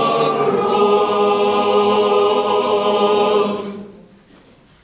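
A choir of young voices sings a held chord in a large echoing hall, then falls silent.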